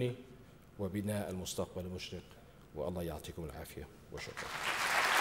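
A middle-aged man speaks calmly through a microphone in a large hall.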